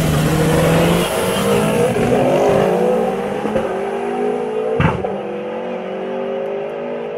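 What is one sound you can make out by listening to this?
Two car engines rev up and roar off down a track into the distance.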